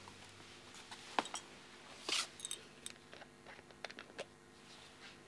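A woman presses the keys on a phone with soft clicks.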